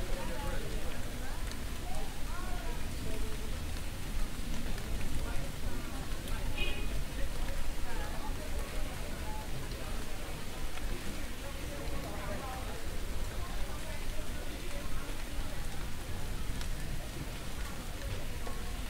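Men and women chatter at a distance outdoors.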